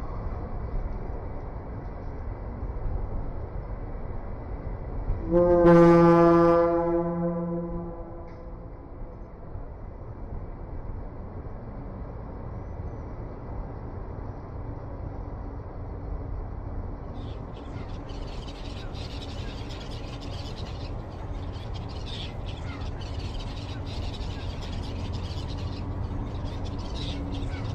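Wind blows outdoors with a low rumble.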